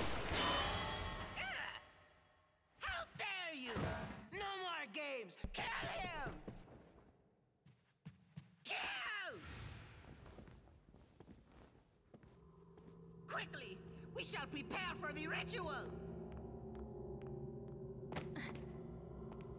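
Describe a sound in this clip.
A young man speaks theatrically, with a mocking, animated voice.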